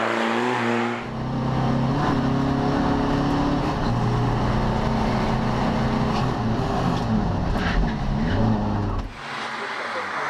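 A rally car engine drones loudly from inside the cabin.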